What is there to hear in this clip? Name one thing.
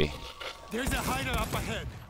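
Gunfire bursts out at close range.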